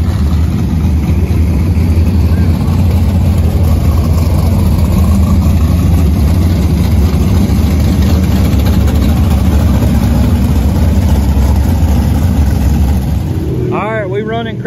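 Race car engines roar loudly on a dirt track.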